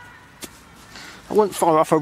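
Hands pat a clump of damp soil back into place in grass.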